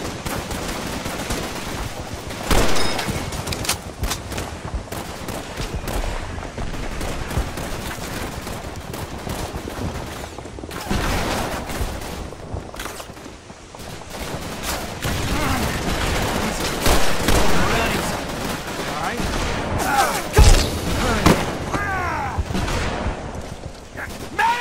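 Rifle shots and explosions boom again and again.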